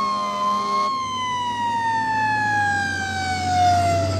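A fire engine's engine rumbles as it passes close by.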